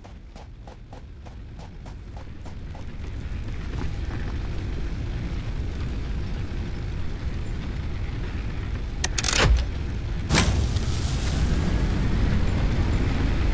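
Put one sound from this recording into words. A large machine rumbles steadily and grows louder.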